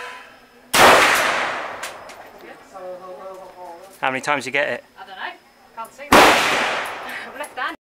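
Loud gunshots ring out outdoors, echoing off a hillside.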